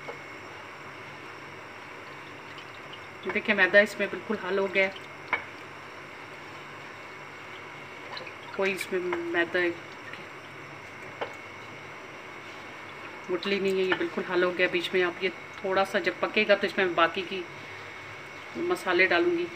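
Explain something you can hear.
A wooden spoon stirs thick sauce in a metal pan.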